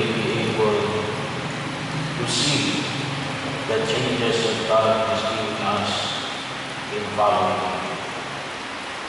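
A man speaks through a microphone.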